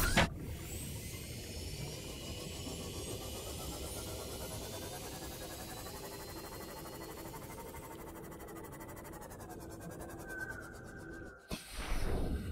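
A small submarine's motor hums steadily as it glides underwater.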